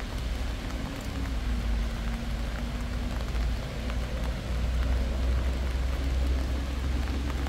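Rain patters steadily on the ground.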